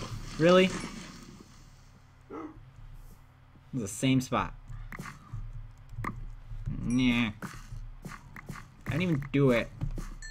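A pick strikes and breaks earth and stone with short crunches.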